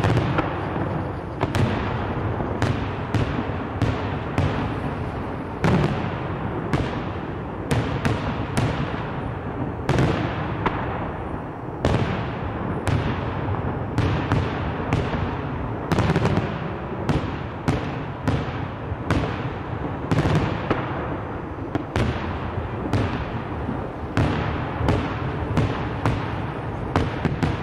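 Firework shells burst overhead in a rapid string of loud, sharp bangs that rumble and echo away.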